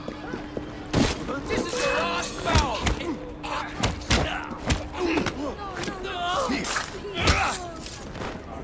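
Fists thud in a scuffle, with blows landing hard.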